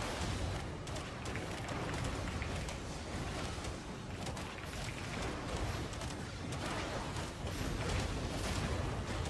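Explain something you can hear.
Magic spells blast and crackle during a fight.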